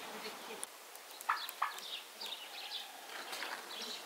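A turkey gobbles outdoors.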